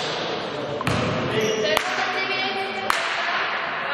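A basketball bounces with loud thuds.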